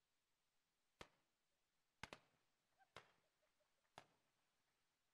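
Confetti cannons pop loudly several times.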